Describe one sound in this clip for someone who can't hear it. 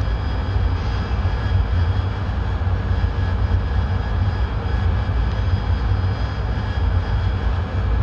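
A jet engine drones steadily and low throughout.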